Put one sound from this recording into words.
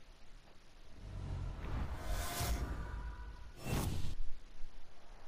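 A deep booming whoosh swells and then cuts off sharply.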